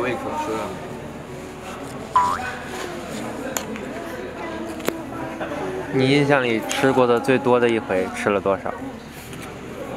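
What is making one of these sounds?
A young man slurps noodles.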